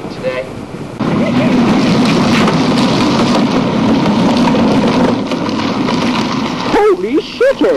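Plastic wagon wheels rumble over pavement.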